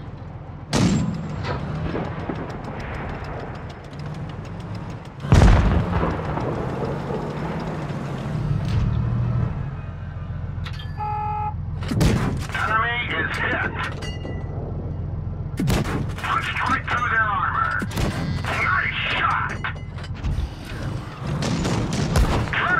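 A tank engine rumbles low.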